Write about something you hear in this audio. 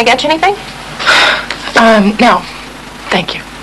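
A young woman answers briefly and calmly.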